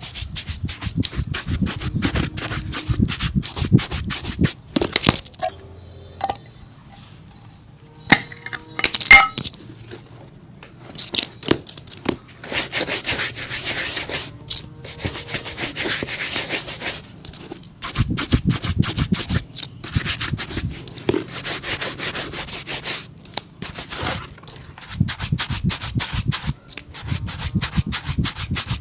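A brush scrubs rapidly against a leather shoe.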